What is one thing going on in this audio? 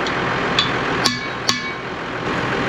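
A hammer strikes metal with sharp clangs.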